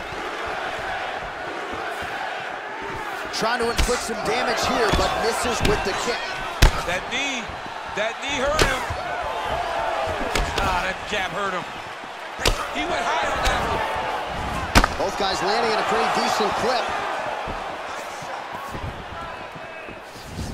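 A crowd murmurs and cheers in a large arena.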